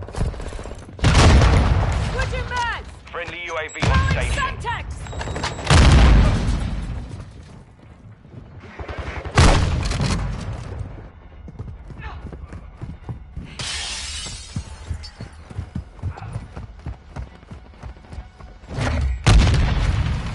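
Loud rifle shots boom and echo.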